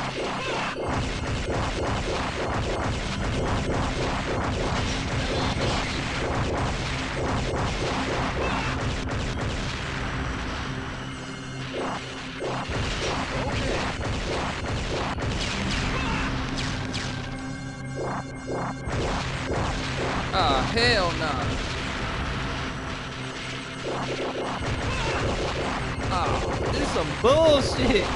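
Upbeat game music plays steadily.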